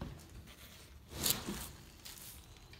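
Weatherstripping rustles and scrapes against a door frame.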